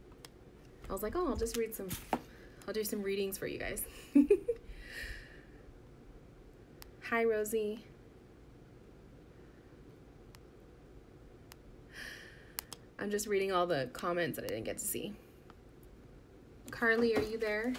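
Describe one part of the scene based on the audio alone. A young woman talks casually and close by, in bursts with pauses.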